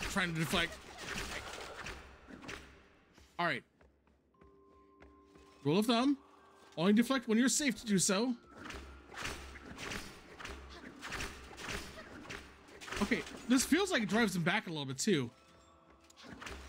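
Game sword strikes and effects clash in short bursts.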